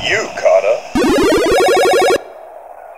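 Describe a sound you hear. A bright electronic jingle plays.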